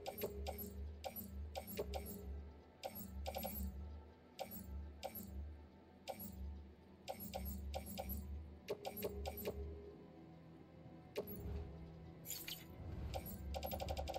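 Short electronic menu clicks tick in quick succession.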